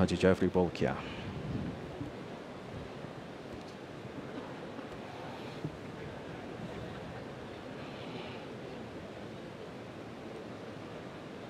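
Many guests murmur quietly in a large echoing hall.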